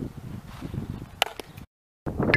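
A bat hits a softball with a sharp crack.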